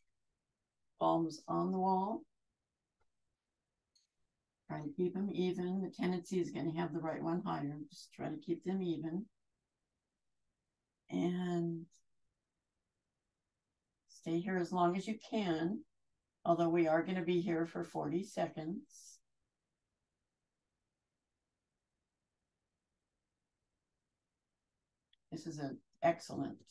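A woman speaks calmly, heard as if through an online call.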